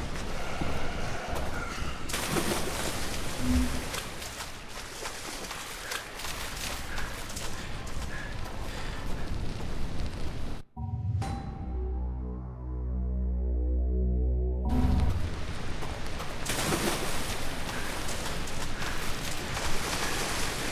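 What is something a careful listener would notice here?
Leaves rustle as someone pushes through dense bushes.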